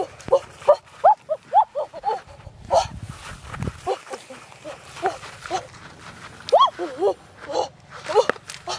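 A young woman cries out in short, high yelps.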